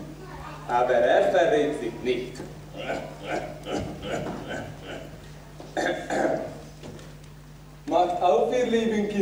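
A woman speaks loudly and theatrically, heard through a microphone in a large hall.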